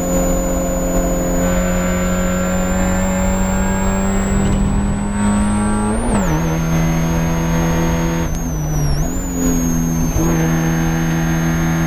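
A Spec Miata race car's four-cylinder engine accelerates at full throttle, rising in pitch.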